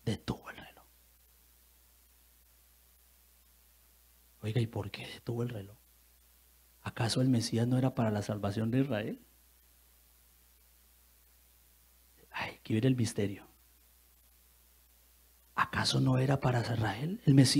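A man speaks with animation through a microphone, in bursts with pauses.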